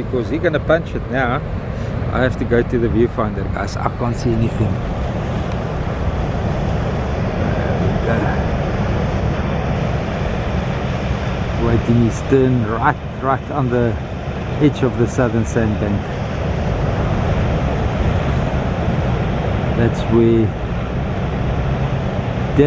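Waves break and wash in steadily.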